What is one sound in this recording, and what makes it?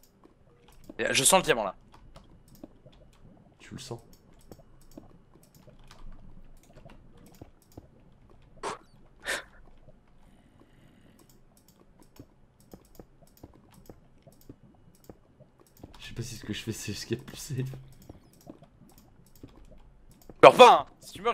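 A young man talks casually into a microphone, in short bursts.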